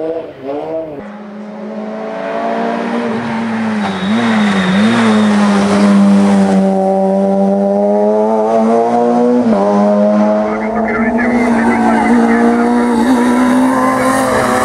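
A rally car engine roars loudly as the car passes close by and accelerates away.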